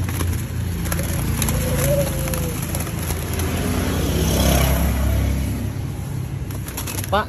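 Caged birds chirp and call nearby.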